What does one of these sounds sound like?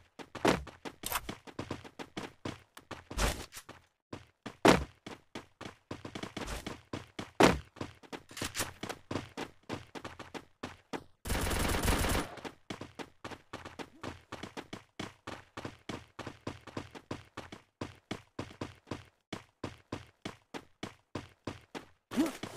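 Quick footsteps run on hard ground.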